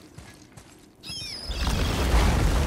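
Large heavy doors creak open.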